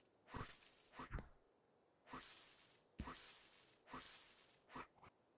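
Soft swishing game sound effects play as pieces slide into place.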